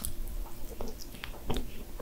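A young woman licks her fingers with wet smacking sounds.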